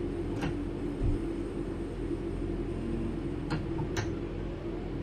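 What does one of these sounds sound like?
Train wheels click over rail joints.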